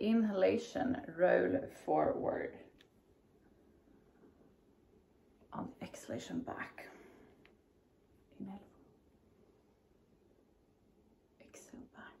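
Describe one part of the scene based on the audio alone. A woman talks calmly and close by, with pauses.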